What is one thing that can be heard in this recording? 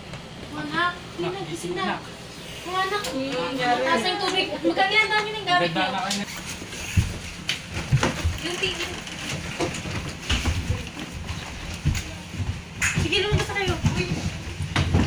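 Young women talk and shout excitedly close by.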